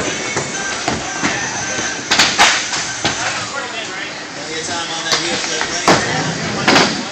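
Skateboard wheels roll and rumble on a wooden floor.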